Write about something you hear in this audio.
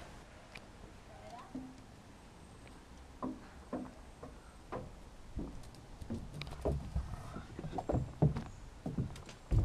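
A small dog's paws tap and patter on plastic steps.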